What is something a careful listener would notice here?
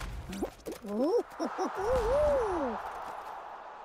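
A short triumphant game jingle plays.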